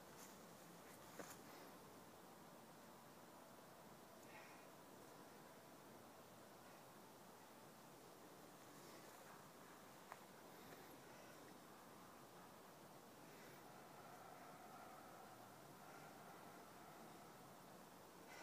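A log scrapes and thumps on a dirt path.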